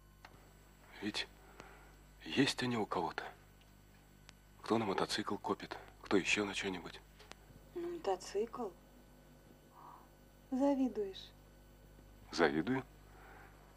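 A woman speaks calmly and close by, in short phrases with pauses.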